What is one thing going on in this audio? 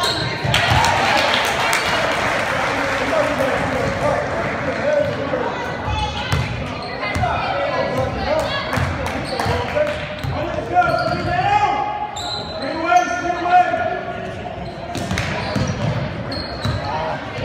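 Young women players shout to each other across the court.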